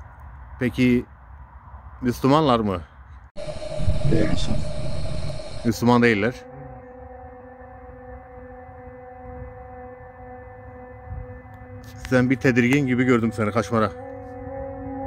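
A man speaks slowly in a low, eerie voice.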